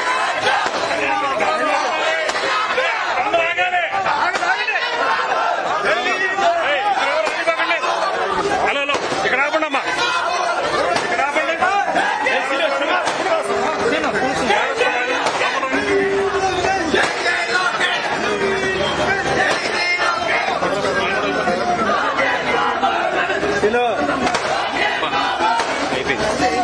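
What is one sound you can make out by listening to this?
A dense crowd of men chatters and shouts all around, close by.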